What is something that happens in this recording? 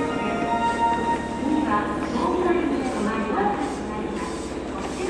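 A train rolls slowly with a low, steady rumble.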